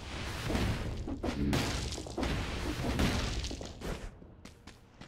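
A magic portal whooshes and rumbles loudly.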